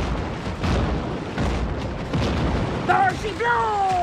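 Cannonball blasts explode in bursts.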